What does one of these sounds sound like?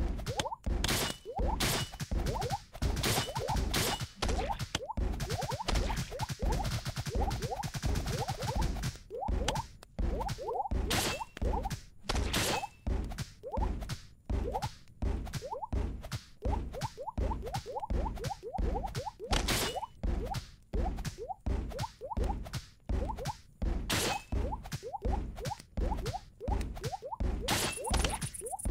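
Coins chime briefly as they are collected.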